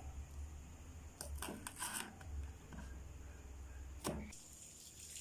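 A knife chops on a wooden board.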